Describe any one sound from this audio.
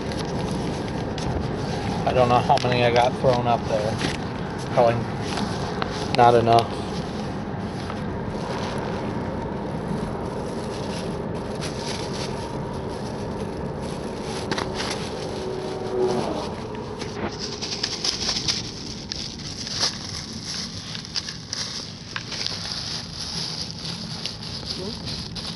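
A car engine hums steadily with road noise from inside the car.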